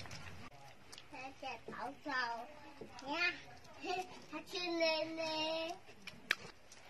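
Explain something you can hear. Puppies whimper and squeal up close.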